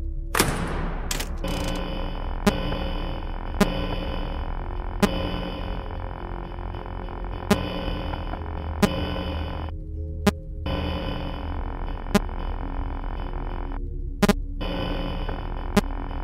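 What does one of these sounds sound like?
Static hisses and crackles from a monitor.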